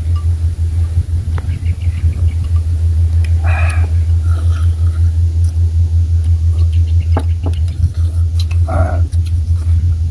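Men slurp soup from bowls.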